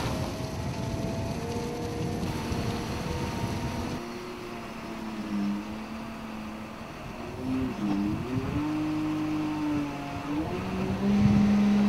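A forklift engine hums and revs.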